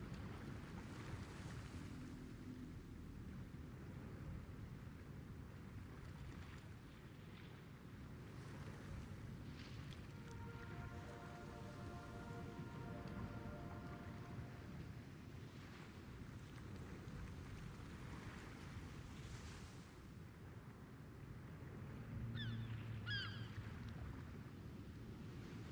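Water laps gently against a ship's hull.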